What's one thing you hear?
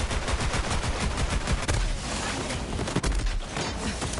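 Explosions boom and crackle.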